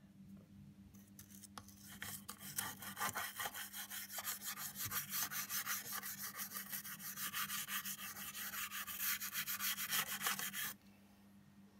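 A stiff brush scrubs rapidly back and forth over a metal panel, scratching.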